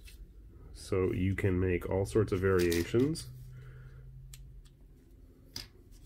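Small plastic parts click and snap together in someone's hands.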